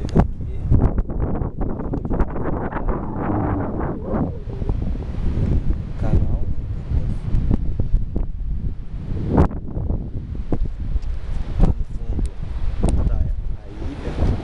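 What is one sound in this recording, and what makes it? Wind buffets and rumbles loudly outdoors on a high cliff.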